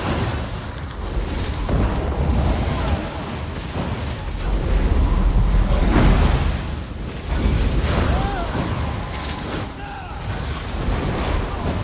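Magic spells crackle and burst in a noisy fantasy battle.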